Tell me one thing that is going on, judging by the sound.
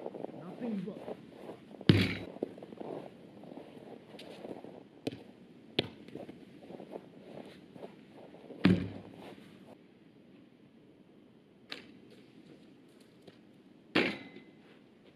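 A ball is kicked with a hard thump.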